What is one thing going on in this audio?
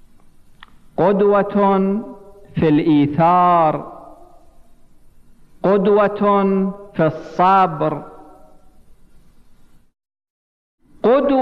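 A man speaks with emphasis into a microphone, his voice echoing in a large hall.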